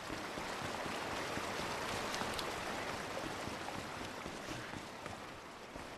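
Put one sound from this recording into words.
Boots splash through shallow water.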